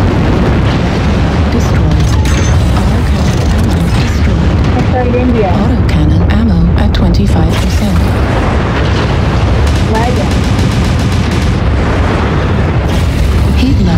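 Lasers fire in sharp zapping bursts.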